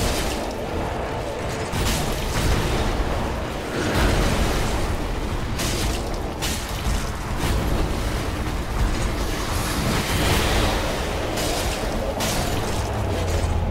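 A sword clangs against a beast in sharp hits.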